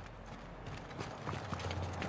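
Footsteps crunch on cobblestones.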